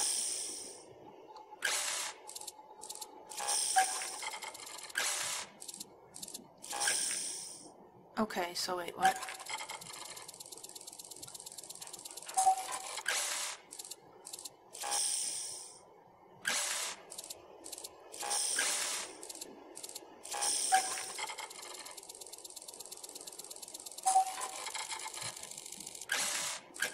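Buttons on a control panel click.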